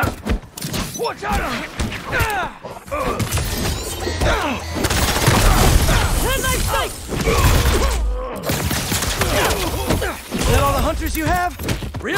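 Punches and kicks land with heavy thuds during a fight.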